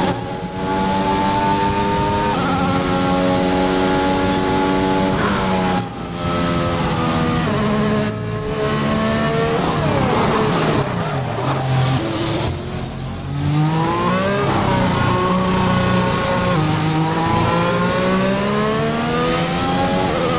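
A racing car engine screams at high revs, dropping in pitch as it shifts gears and brakes, then rising again as it speeds up.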